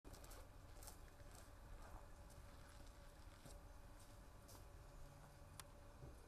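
Footsteps crunch on snow and scrape up stone steps.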